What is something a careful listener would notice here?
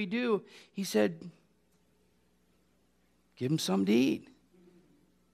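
A man speaks with animation through a microphone, with pauses.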